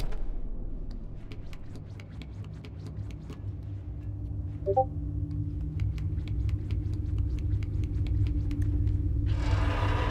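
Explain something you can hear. Small light footsteps patter quickly on a hard floor.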